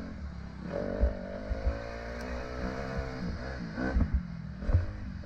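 A dirt bike engine revs up and down.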